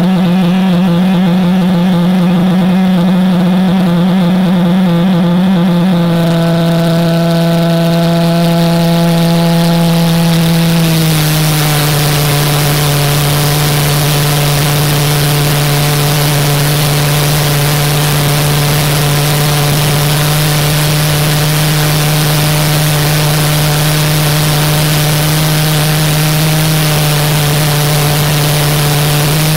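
A small jet engine runs with a loud, steady buzzing roar that drops in pitch twice.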